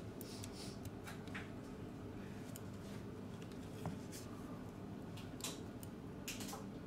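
Metal tweezers tick and scrape against a small plastic part.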